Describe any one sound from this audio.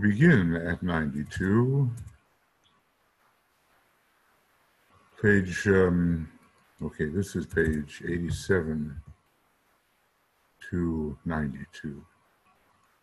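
An elderly man speaks calmly and closely into a microphone, pausing between phrases.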